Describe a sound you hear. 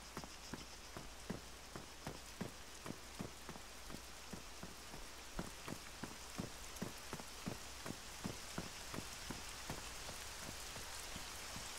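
Footsteps thud quickly and steadily on grass.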